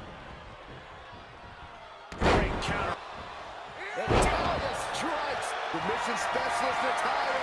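A large crowd cheers and roars.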